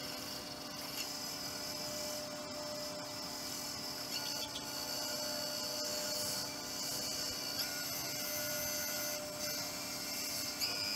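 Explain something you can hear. A lathe hums steadily as a bowl spins.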